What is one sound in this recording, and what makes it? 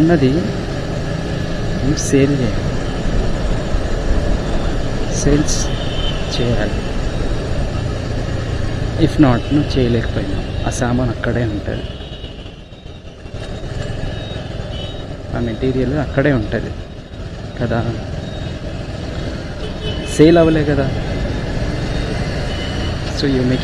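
Traffic rumbles along a busy road.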